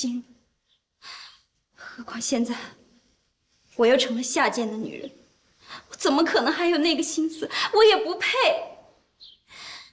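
A young woman speaks close by, upset and pleading, her voice breaking.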